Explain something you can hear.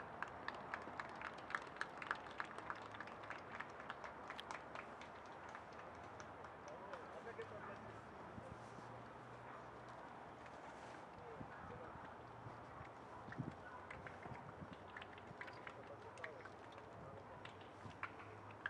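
A small crowd claps in scattered bursts outdoors.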